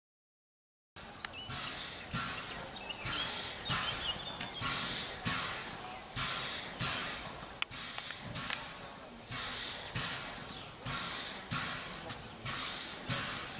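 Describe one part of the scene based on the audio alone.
A steam locomotive chuffs in rhythmic bursts as it pulls away.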